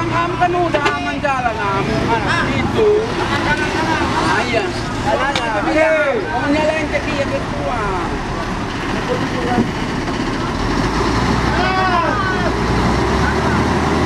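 Men shout and call out nearby outdoors.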